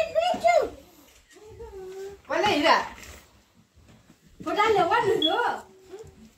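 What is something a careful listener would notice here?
Women talk and call out with animation close by.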